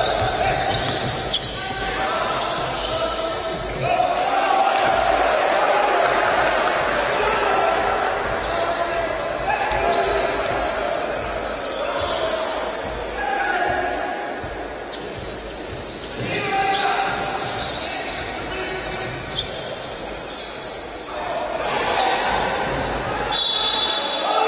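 A basketball thumps on the court as players dribble.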